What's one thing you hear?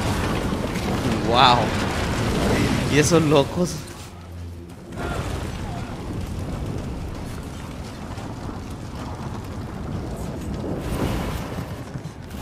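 Flames roar from a burning ship.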